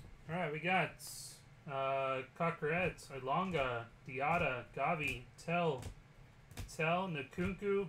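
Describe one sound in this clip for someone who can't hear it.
A plastic card case taps and rubs against fingers.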